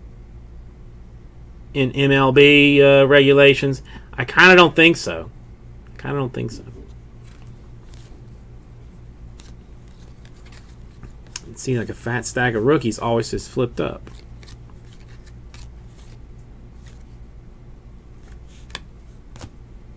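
Stiff cards slide and click against each other as they are flipped through by hand.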